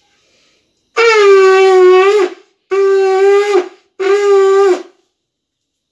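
A woman blows a conch shell in three long, loud blasts.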